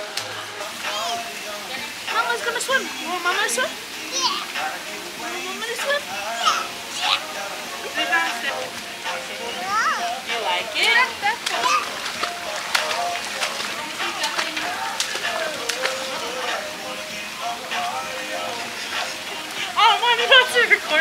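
A small child squeals and babbles excitedly.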